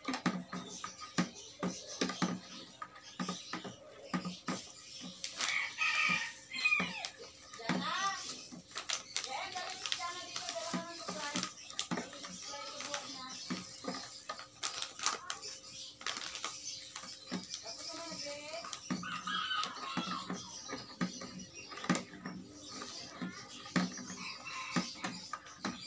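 A wooden pole thumps repeatedly into a plastic bucket.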